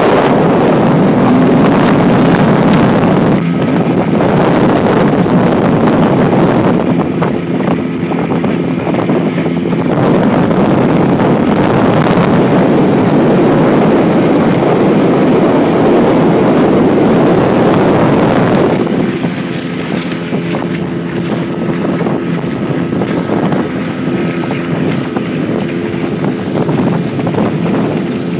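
Water splashes and hisses against a moving boat's hull.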